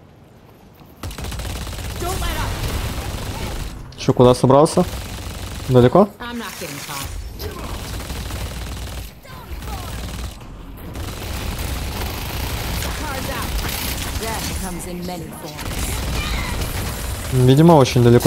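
Gunfire and blasts ring out in quick bursts.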